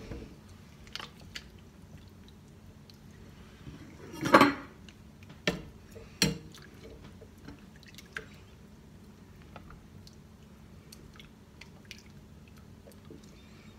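A plastic spatula scrapes and knocks against a metal pot.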